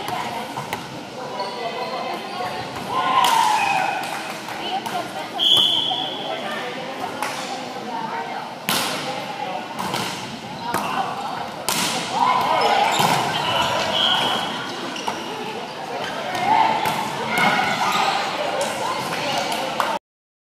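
Young men and women call out to one another during play.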